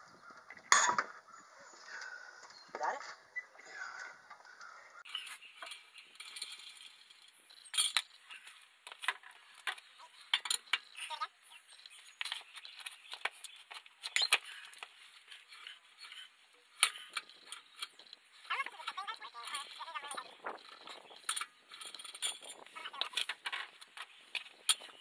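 A metal lug wrench clanks and scrapes against wheel nuts.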